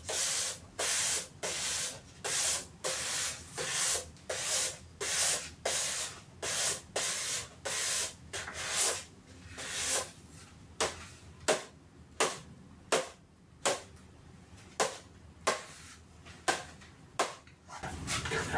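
Cardboard tubes tap against each other in a steady rhythm.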